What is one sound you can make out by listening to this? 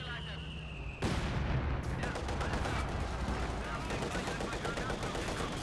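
A large explosion bursts with a loud boom.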